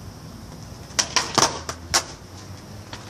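A skateboard clatters and slaps onto pavement.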